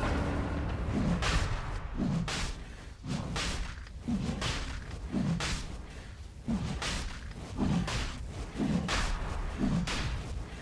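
Thumping blows land repeatedly in a game battle.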